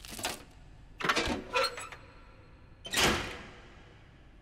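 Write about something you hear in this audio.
A metal switch clunks loudly.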